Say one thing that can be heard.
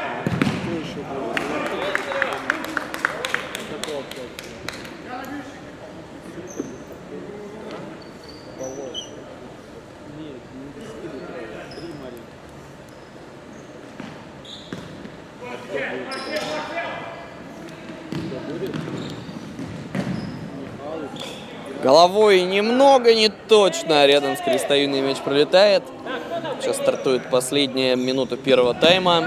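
Men call out to each other loudly across the court.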